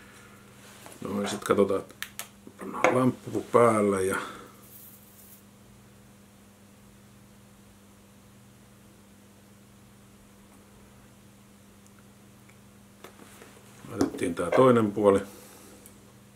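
A man speaks calmly, close to the microphone.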